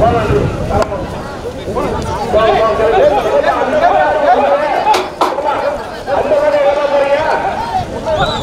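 A crowd of men chants loudly together outdoors.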